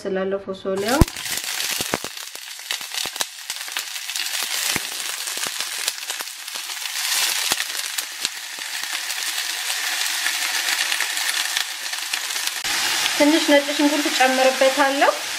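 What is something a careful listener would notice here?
Green beans sizzle and crackle loudly in hot oil in a pan.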